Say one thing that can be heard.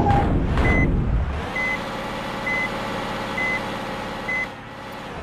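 A digger's reversing alarm beeps at a steady pace.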